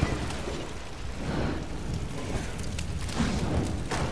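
A hanging sack bursts into flames with a whoosh.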